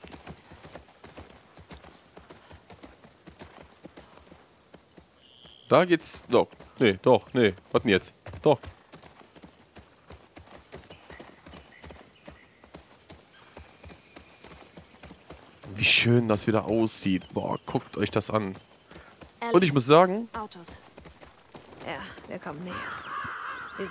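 A horse's hooves thud slowly on a soft forest path.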